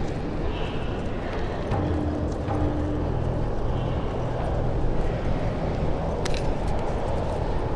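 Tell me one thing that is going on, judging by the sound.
Footsteps shuffle softly over gritty debris.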